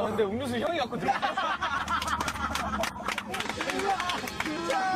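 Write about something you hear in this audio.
Young men laugh loudly and cheer.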